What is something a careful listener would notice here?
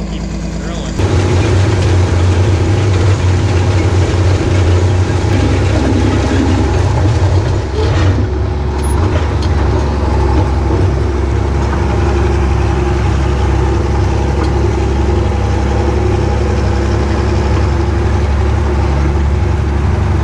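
A tractor engine rumbles loudly and steadily.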